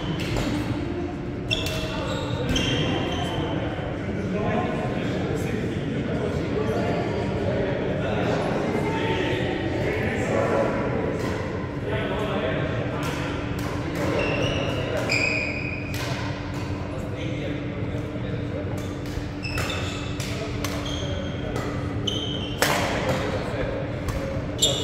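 Rackets smack shuttlecocks with sharp pops in a large echoing hall.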